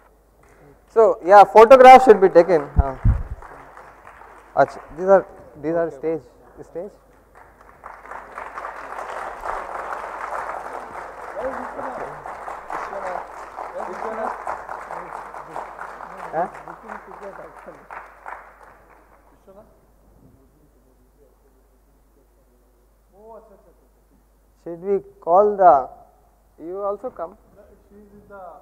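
A man speaks into a microphone over a loudspeaker in a large hall.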